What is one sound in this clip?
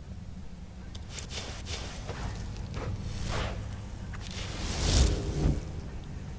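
A magic spell crackles and whooshes loudly.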